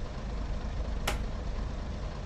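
A rotary switch clicks once.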